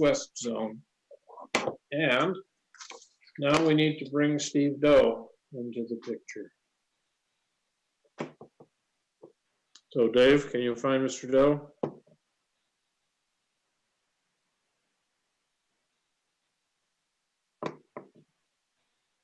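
An elderly man speaks calmly over an online call, with short pauses.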